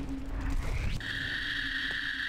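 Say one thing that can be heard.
A laser beam fires.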